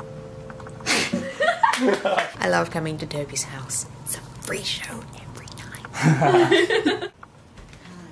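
A young woman talks excitedly close by.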